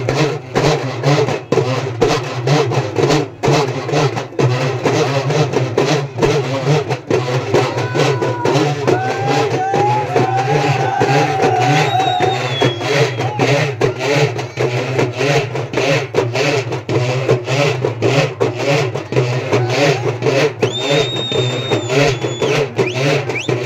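Wooden sticks clack together in a steady beat.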